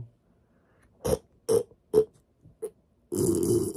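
Short popping sounds come from a young man's mouth.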